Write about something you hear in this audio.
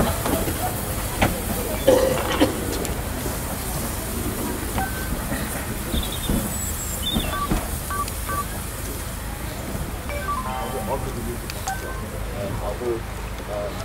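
Steel wheels clank and squeal on the rails.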